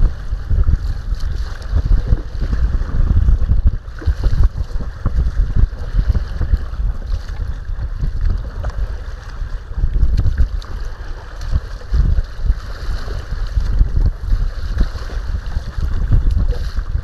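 Wind buffets loudly across open water.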